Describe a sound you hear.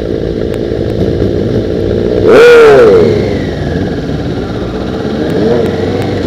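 Motorcycle engines rumble steadily close by.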